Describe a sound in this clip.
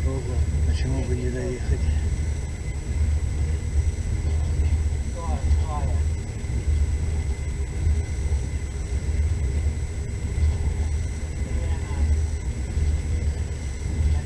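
Train wheels clack rhythmically over rail joints.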